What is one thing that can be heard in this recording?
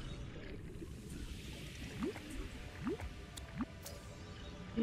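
Bubbles fizz and burst underwater.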